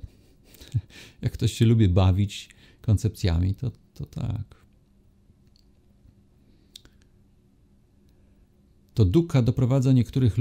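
A middle-aged man speaks calmly and cheerfully into a close microphone, with pauses.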